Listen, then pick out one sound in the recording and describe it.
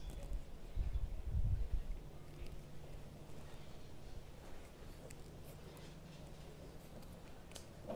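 Pliers crimp a small metal connector onto a wire.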